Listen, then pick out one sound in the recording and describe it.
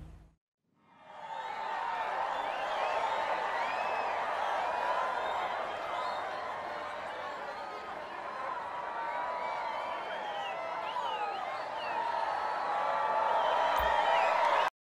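A crowd cheers, whistles and chatters noisily.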